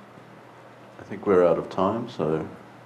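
A second man speaks calmly through a microphone.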